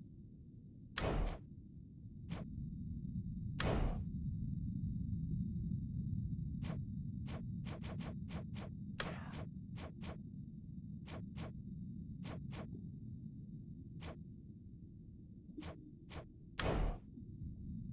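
Short game menu clicks tick as options change.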